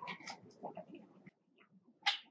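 A woman sips a drink through a straw close to a microphone.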